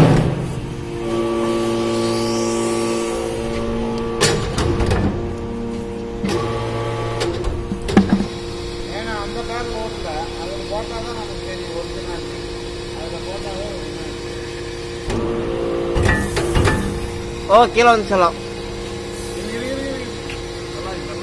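A machine hums steadily with a loud droning tone.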